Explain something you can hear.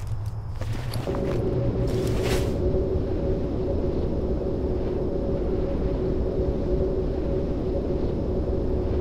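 A magical spell hums steadily as it is cast.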